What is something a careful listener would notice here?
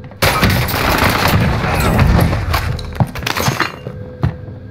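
An explosion booms and crackles loudly.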